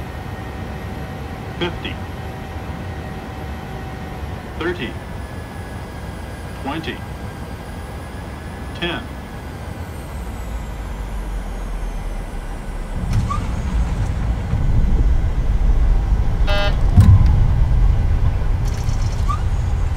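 Jet engines roar steadily and grow louder.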